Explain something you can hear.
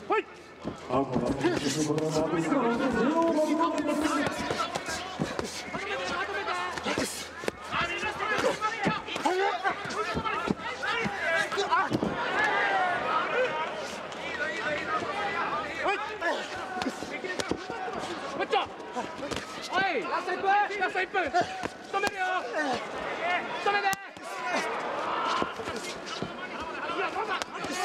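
A crowd cheers.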